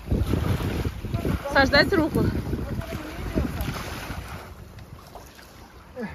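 A kayak paddle splashes in the water.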